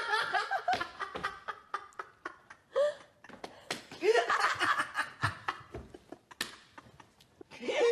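A man laughs heartily.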